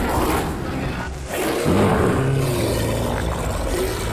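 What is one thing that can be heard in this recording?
A monster growls and snarls loudly.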